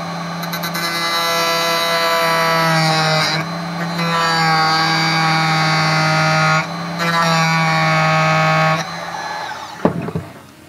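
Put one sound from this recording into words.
A high-pitched rotary tool whines steadily, dipping in pitch as it grinds.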